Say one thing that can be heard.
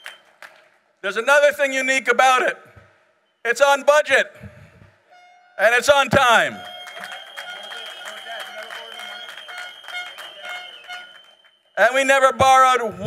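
A man speaks forcefully through a microphone, his voice echoing in a large hall.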